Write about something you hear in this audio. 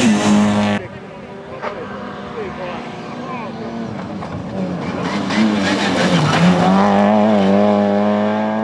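A rally car engine revs hard and roars past up close.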